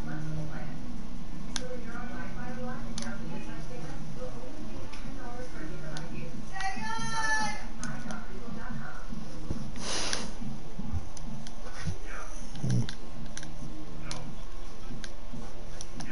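Short menu clicks tick as options change.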